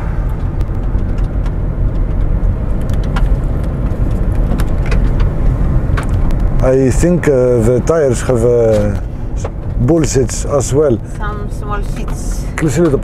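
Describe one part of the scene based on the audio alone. A car engine hums steadily with tyres rumbling on the road.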